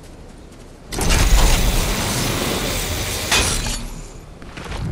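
A zipline whirs loudly as a rider slides along a cable.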